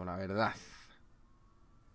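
A man speaks briefly into a microphone, then falls silent.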